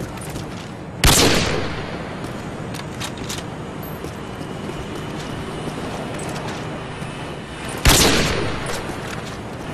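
A bolt-action sniper rifle fires a loud shot that echoes away.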